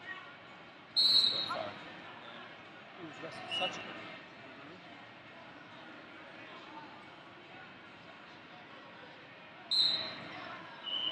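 A referee blows a shrill whistle in a large echoing hall.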